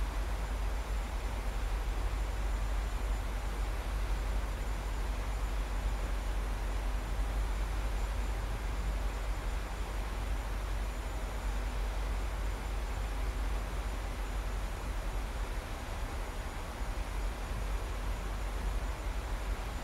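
Jet engines roar steadily in a cockpit.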